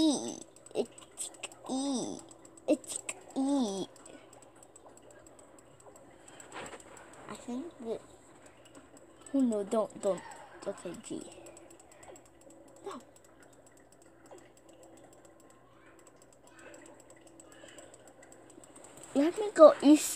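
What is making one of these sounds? Cartoonish creature chirps and squeaks play through small laptop speakers.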